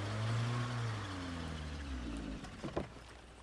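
A car engine idles and slowly winds down.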